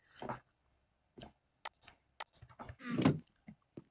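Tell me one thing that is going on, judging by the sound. A wooden chest thuds shut.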